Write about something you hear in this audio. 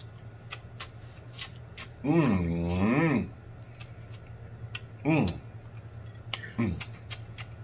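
A man sucks and slurps food close by.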